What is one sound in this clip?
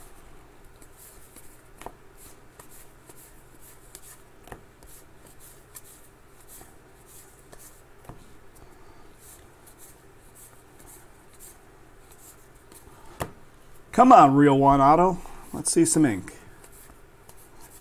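Trading cards rustle and flick as hands shuffle through them.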